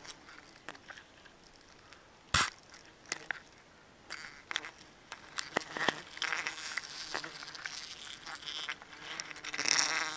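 Leafy branches rustle and snap as someone climbs through a tree.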